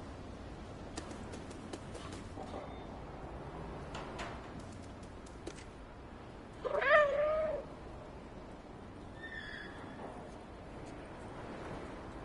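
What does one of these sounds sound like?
A cat's paws patter softly on hard ground.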